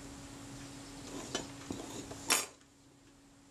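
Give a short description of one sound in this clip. Fingers handle a small metal piece with light scraping and tapping.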